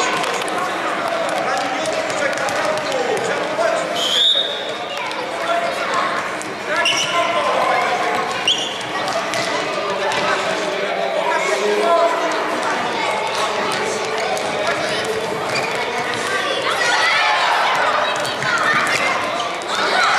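A football is kicked and bounces on a hard indoor floor.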